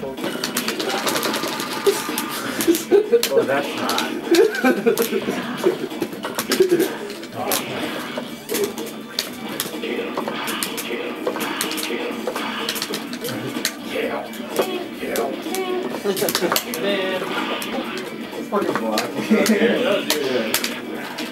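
Punches and kicks land with sharp smacks in a fighting video game.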